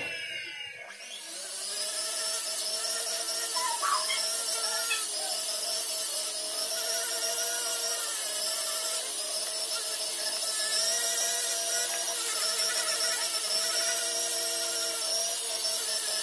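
A small rotary tool whirs steadily as it polishes metal.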